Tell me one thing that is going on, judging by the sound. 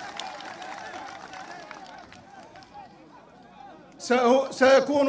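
A crowd cheers and murmurs outdoors.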